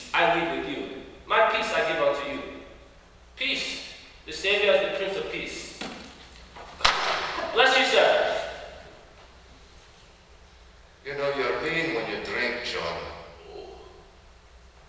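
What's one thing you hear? A man speaks loudly and with feeling in a large echoing hall.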